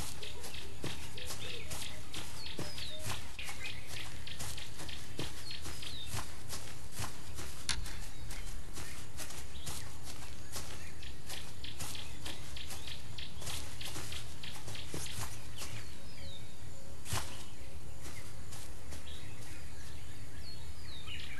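A tiger's paws pad on grass.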